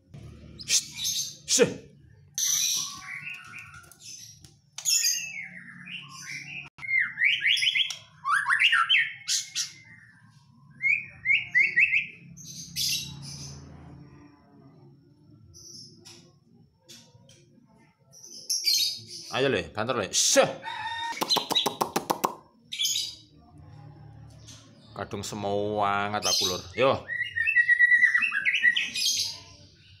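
A songbird sings loud, varied whistling phrases and chirps close by.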